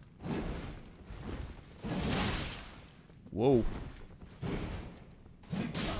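Swords swing and clash in a fight.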